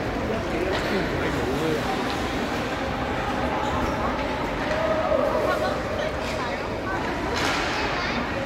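Skates scrape and swish across ice.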